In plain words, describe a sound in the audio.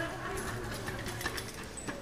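A bicycle bumps down concrete steps.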